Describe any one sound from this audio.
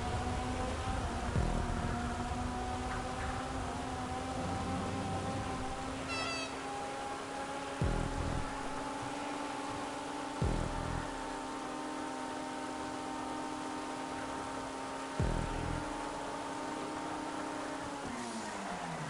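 A car engine roars steadily at high revs, with brief dips at each gear change.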